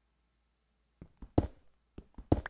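A pickaxe chips at stone with quick knocks.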